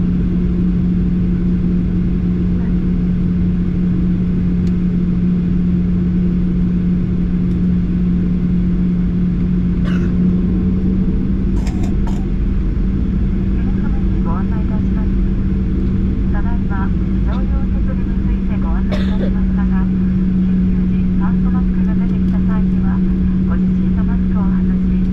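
Plane wheels rumble over the runway.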